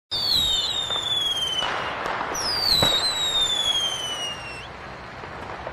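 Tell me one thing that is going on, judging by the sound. Fireworks whistle shrilly, falling slowly in pitch.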